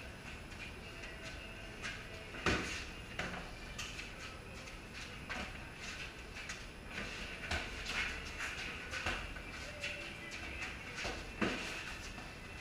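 Punches smack against pads in a small echoing room.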